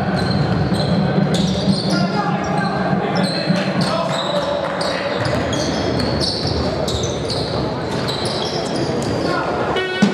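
Basketball shoes squeak on a hard court.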